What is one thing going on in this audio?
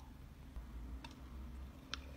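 A button clicks on a small appliance.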